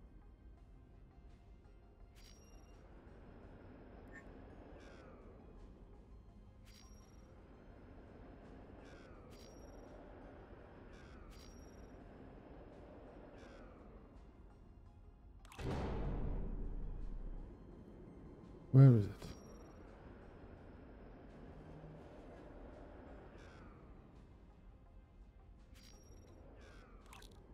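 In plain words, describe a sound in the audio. A spaceship engine hums softly and steadily.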